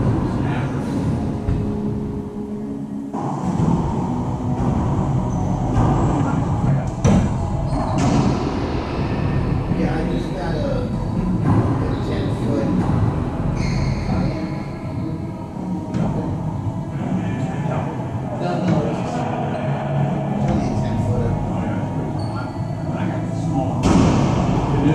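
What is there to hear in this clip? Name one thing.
Men and women talk loosely, echoing in a large hard-walled room.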